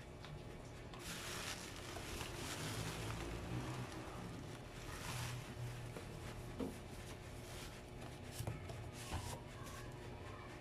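Plastic bubble wrap rustles and crinkles as hands dig through it.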